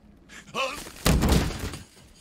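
A heavy blow lands with a loud crashing thud.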